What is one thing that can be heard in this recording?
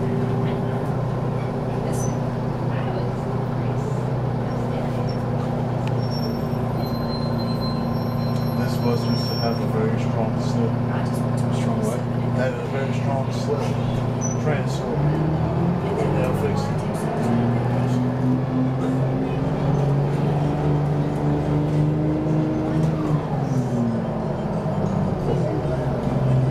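A bus engine hums and drones steadily, with its pitch shifting as it speeds up.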